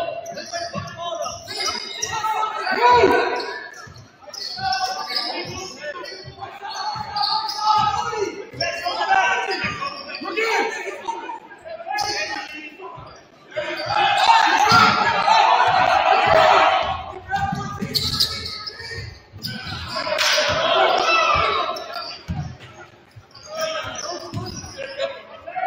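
A basketball bounces on a wooden floor in an echoing gym.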